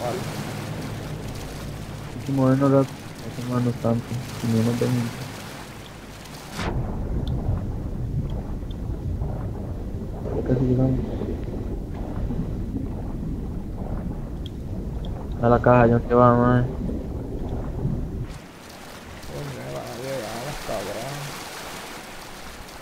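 Water splashes as a swimmer strokes at the surface.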